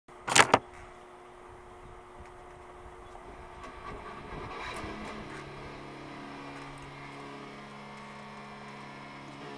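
An electric guitar is strummed and picked, its notes ringing on.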